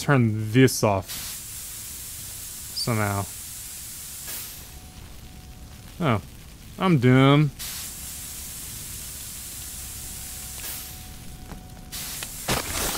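A hose sprays water with a steady hiss.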